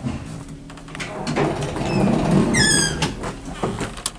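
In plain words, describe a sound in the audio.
An elevator door slides open.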